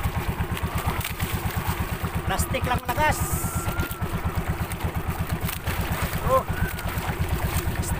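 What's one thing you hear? A boat engine thuds steadily and quickly.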